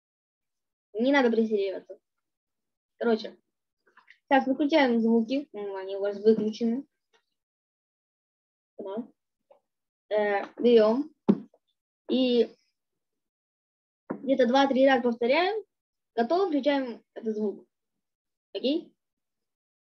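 A girl speaks calmly in short bursts over an online call.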